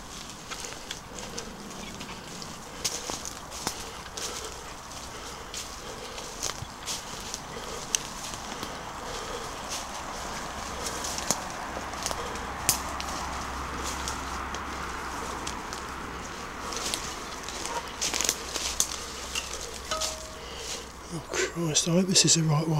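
Wind rustles leaves in the woods.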